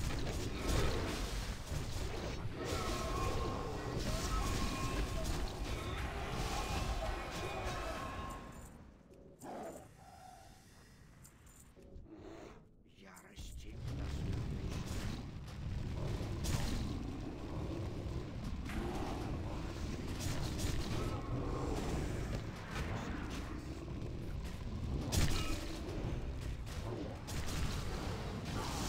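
Magic spells and weapon strikes crash and crackle in a busy battle, quieting briefly in the middle.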